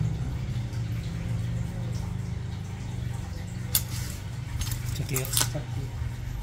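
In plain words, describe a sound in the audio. Nail clippers snip sharply at a toenail.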